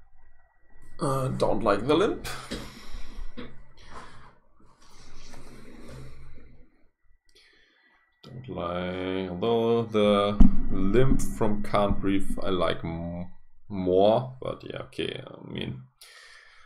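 A man talks calmly and casually into a microphone, close by.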